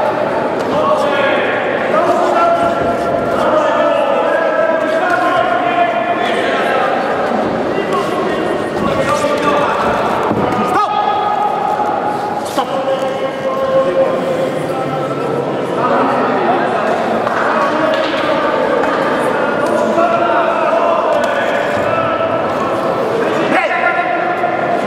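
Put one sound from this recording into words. Boxing gloves thud against a body.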